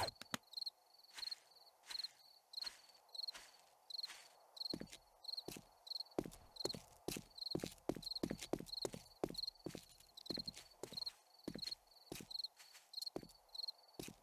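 Footsteps thud steadily on a gravel road.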